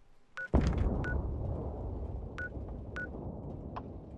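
Short menu beeps sound a few times.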